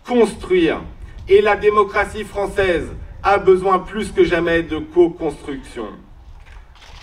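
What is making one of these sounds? A man speaks calmly into a microphone through loudspeakers.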